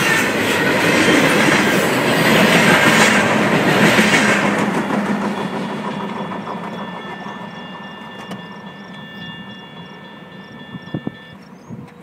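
A freight train rumbles past close by, then fades into the distance.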